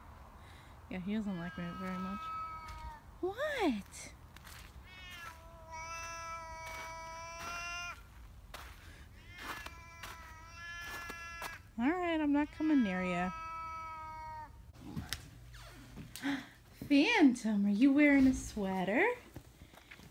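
A small dog howls and whines in long, wavering cries.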